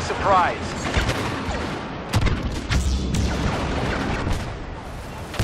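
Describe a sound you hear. A loud explosion booms.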